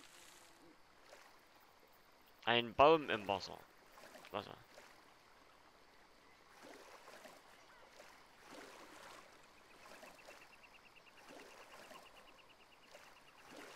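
Water splashes as a swimmer paddles through it.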